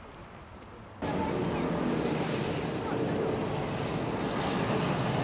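Young boys talk with each other nearby.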